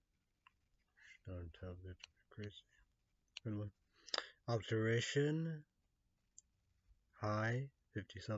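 A young man speaks calmly and close up, in short phrases.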